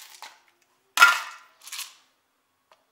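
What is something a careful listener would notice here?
A plastic cup knocks down onto a hard surface.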